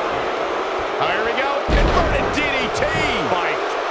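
Bodies slam hard onto the ring mat with a loud thud.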